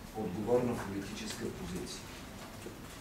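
An elderly man speaks calmly into microphones.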